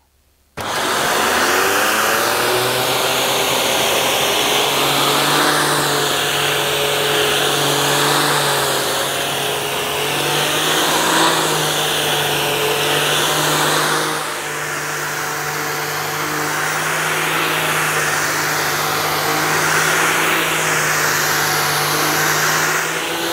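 A vacuum cleaner brush rolls over carpet.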